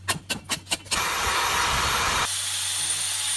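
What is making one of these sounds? A power drill grinds into ice.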